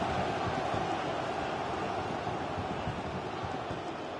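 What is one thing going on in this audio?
A large crowd roars and cheers steadily in a stadium.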